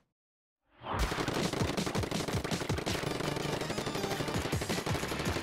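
Ink guns fire in rapid wet splats.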